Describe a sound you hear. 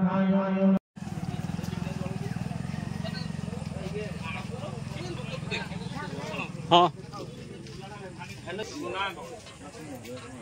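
Women and men talk nearby outdoors.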